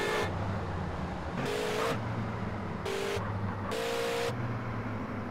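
Car tyres squeal in short bursts.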